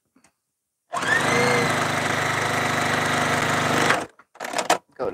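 A sewing machine runs, stitching fabric.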